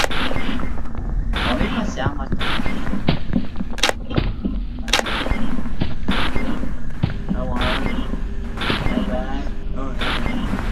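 Electrical static hisses and crackles.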